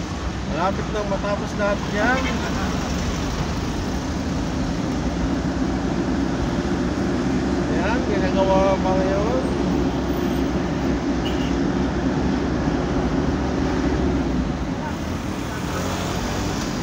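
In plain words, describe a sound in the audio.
Motorcycle engines buzz close by.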